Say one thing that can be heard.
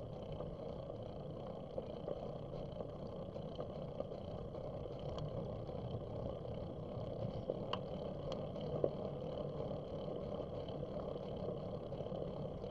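Wind rumbles past outdoors.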